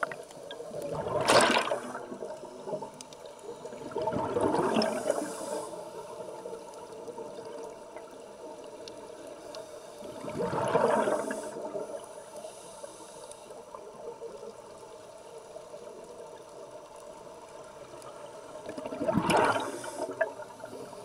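Bubbles from a scuba diver's breathing gurgle and rumble underwater in bursts every few seconds.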